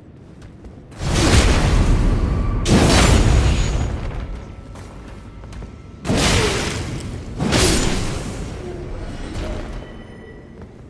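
Heavy weapon blows strike with loud crashing bursts.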